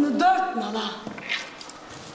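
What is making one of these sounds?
A woman cries out loudly in an echoing hall.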